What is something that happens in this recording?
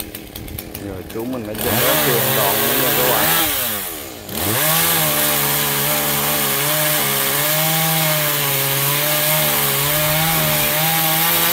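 A chainsaw revs loudly and cuts through wood.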